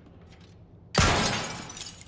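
A pistol fires a loud shot that echoes.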